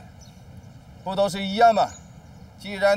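A middle-aged man answers calmly.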